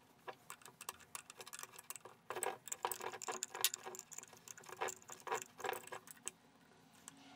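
A metal tool clicks and taps against a metal fitting.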